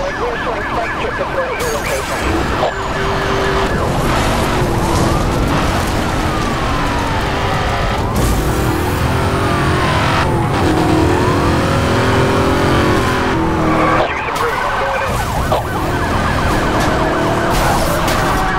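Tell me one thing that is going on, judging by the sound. A racing car engine roars and revs at high speed.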